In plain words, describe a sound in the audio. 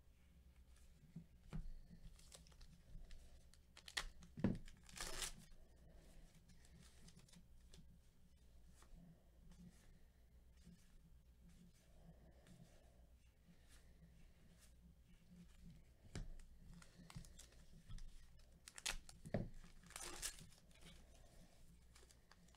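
Plastic wrappers crinkle as packs of cards are handled.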